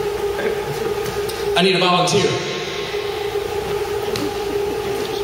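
A man speaks into a microphone, heard over a loudspeaker in a large echoing hall.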